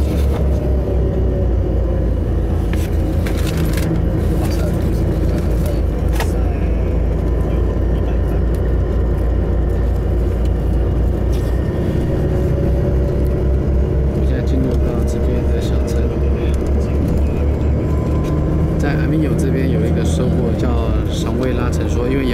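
A bus engine's pitch rises and falls as the bus speeds up and slows.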